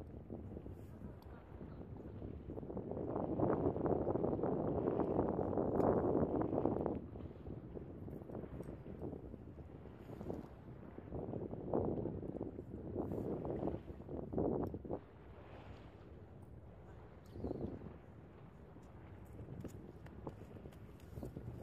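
Small waves lap against a stone pier.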